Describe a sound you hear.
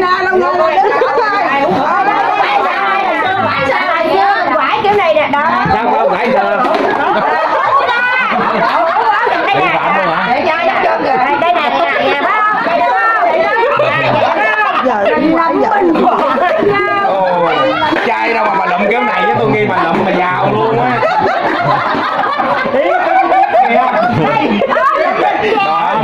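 Several middle-aged and elderly women talk and laugh together with animation, close by.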